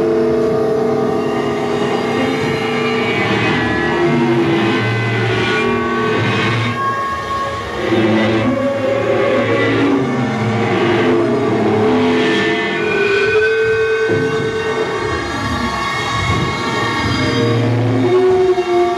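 An electric guitar plays sustained, droning notes through an amplifier.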